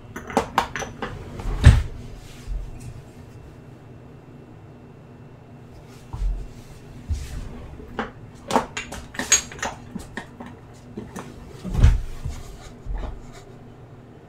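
Kitchen utensils knock and clatter nearby.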